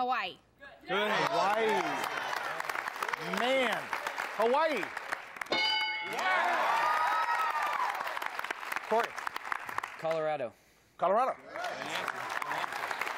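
A group of people clap and cheer.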